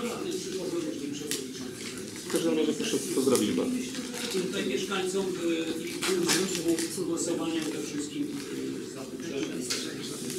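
Papers rustle on a table.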